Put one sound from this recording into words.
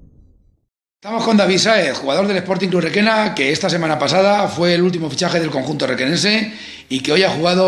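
A young man speaks calmly and closely into a microphone.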